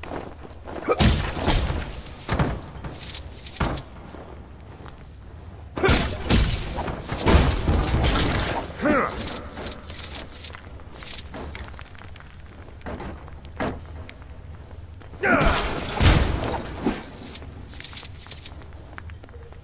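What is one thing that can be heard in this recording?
Small studs jingle as they are collected.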